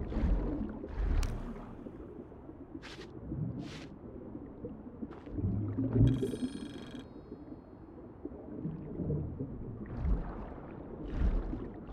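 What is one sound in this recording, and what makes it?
Water swirls and gurgles as a swimmer strokes underwater.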